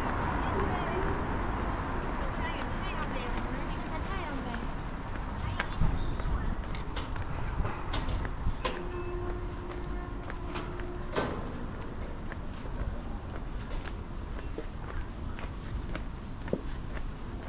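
City traffic hums steadily outdoors.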